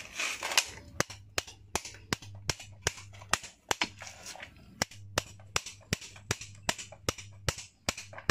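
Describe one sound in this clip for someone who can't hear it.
Pliers tap and click sharply against metal in a quick, steady rhythm.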